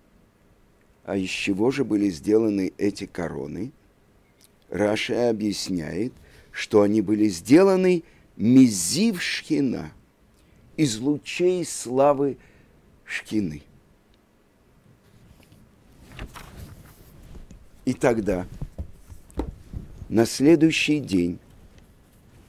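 A middle-aged man reads out and chants expressively, close to a microphone.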